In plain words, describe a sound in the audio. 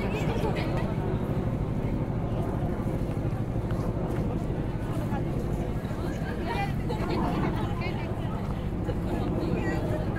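Footsteps shuffle on leaves and gravel.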